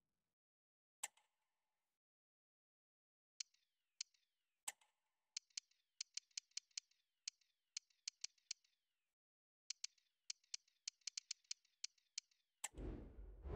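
Short electronic clicks tick rapidly as menu options scroll.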